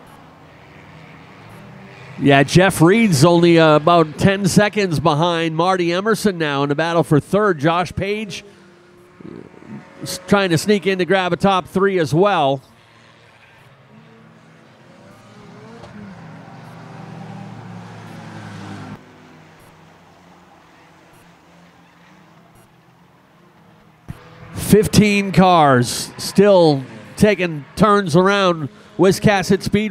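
Race cars roar around a track.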